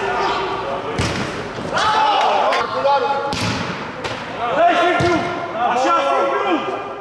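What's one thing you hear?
A ball is kicked hard several times.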